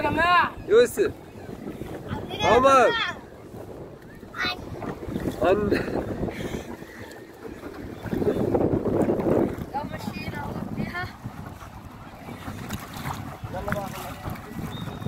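Water splashes and laps against a boat.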